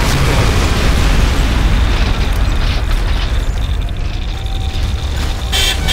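Explosions boom in quick succession.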